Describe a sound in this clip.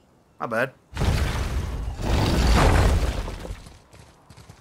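Heavy stone doors grind open with a deep rumble.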